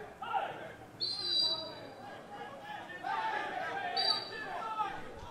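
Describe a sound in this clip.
A referee's whistle blows short and sharp outdoors.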